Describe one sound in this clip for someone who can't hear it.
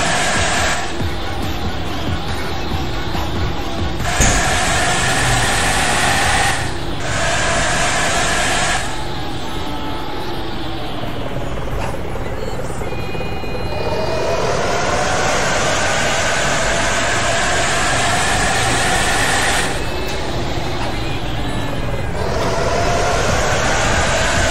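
A bus engine hums steadily and rises and falls in pitch as it climbs and turns.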